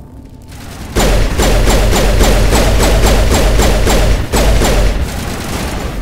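Rapid gunfire blasts in a long burst.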